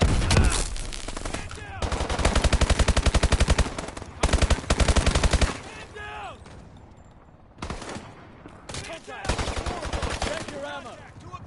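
A rapid-fire gun shoots loud bursts.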